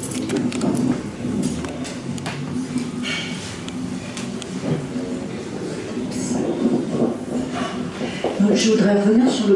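An older man speaks into a microphone with animation, in a room with some echo.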